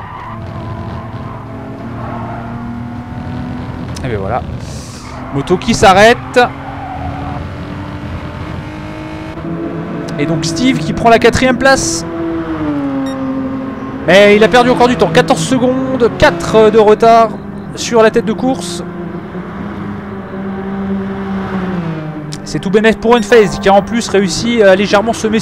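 A racing car engine roars steadily, its pitch rising and falling with gear changes.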